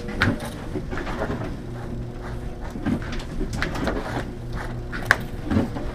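A stiff brush scrapes rhythmically through fur.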